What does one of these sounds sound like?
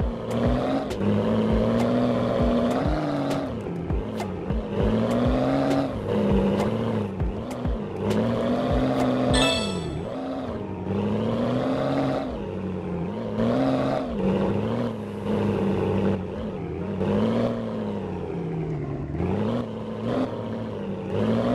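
A monster truck engine roars and revs up and down.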